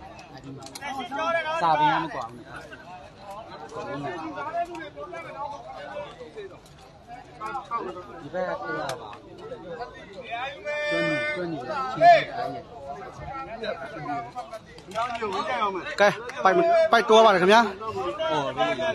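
A young man shouts loudly during a game.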